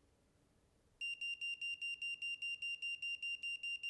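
A breath tester beeps rapidly and evenly.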